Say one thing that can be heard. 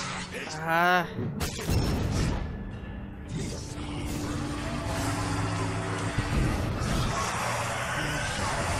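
Magic energy blasts crackle and whoosh.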